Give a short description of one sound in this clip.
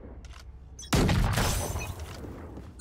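Gunshots crack loudly in rapid bursts.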